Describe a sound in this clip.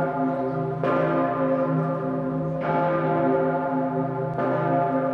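A large church bell tolls loudly, each deep ringing stroke humming on as the next one strikes.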